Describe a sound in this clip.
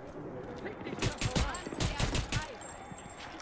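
Pistol shots bang out in a quick burst.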